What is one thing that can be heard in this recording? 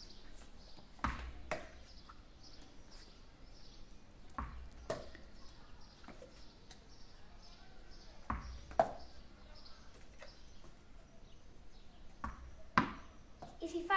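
A ball knocks against a paddle, echoing in a bare room.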